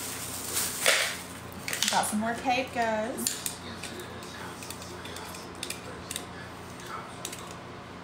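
Small packaging clicks and taps as it is opened.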